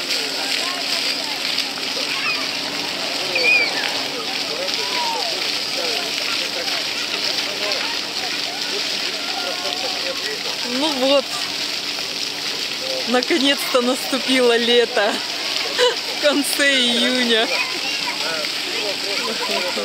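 Fountain jets splash steadily onto wet pavement.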